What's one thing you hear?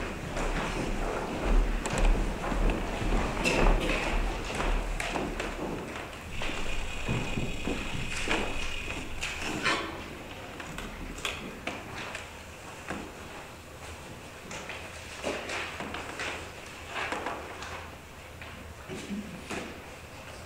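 An elderly man speaks calmly, his voice echoing in a large hall.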